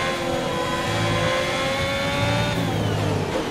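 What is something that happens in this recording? A racing car engine screams at high revs, climbing steadily in pitch.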